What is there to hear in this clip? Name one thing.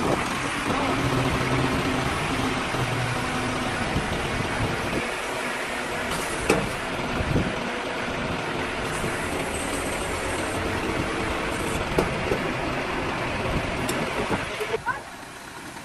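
A crane engine hums steadily.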